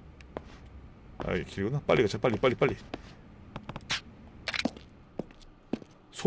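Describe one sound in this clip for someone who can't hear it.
Footsteps thud up a flight of stairs.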